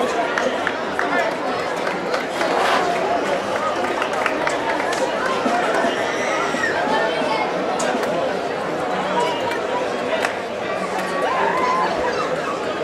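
A large crowd outdoors chatters and shouts continuously.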